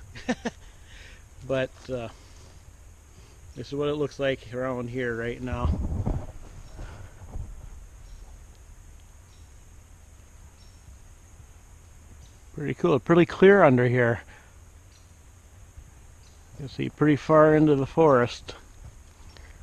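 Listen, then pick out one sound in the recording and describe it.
A middle-aged man speaks calmly and close by, outdoors.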